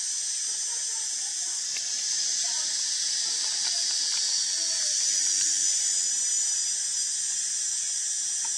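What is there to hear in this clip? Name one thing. A baby monkey suckles softly at close range.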